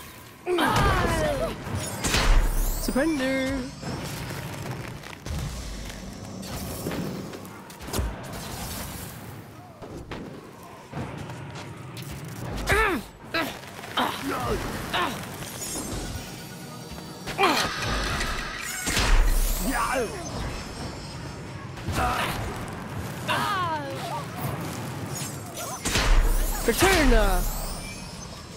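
Bursts of magic explode with loud booms.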